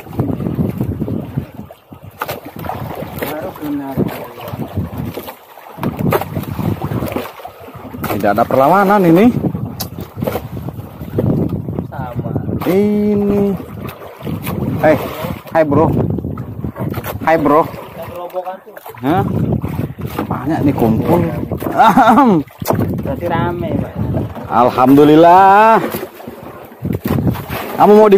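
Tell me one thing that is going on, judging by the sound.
Wind gusts across open water.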